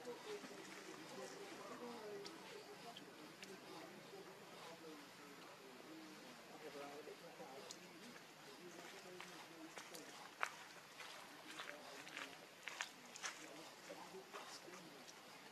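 A baby monkey suckles close by with soft wet smacking sounds.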